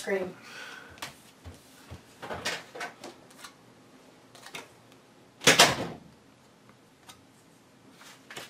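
Playing cards slide and tap softly on a felt table.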